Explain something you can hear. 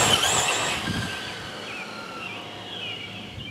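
A small toy car's electric motor whines as it speeds along a road.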